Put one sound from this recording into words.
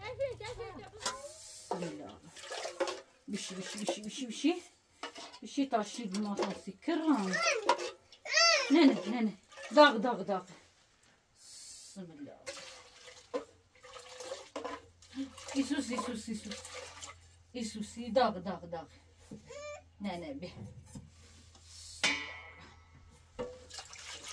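Metal dishes clink and clatter.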